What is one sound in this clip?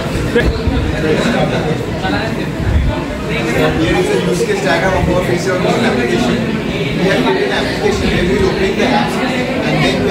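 A young man speaks calmly, presenting to a room.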